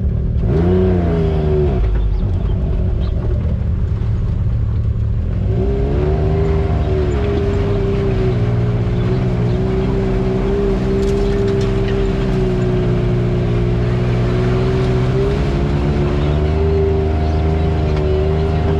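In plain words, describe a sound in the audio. An off-road vehicle's engine hums and revs up and down.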